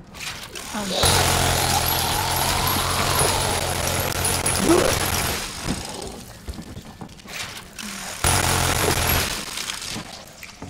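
A minigun fires in rapid bursts.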